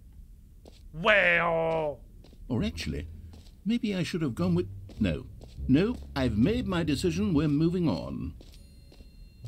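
A man talks animatedly into a close microphone.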